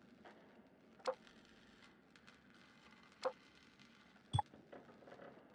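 Short menu clicks sound as a selection moves, ending with a brighter confirm tone.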